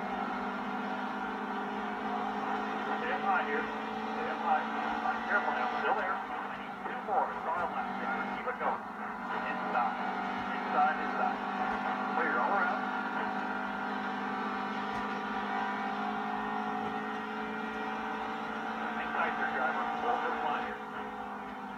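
Engine roar of other race cars passes close by.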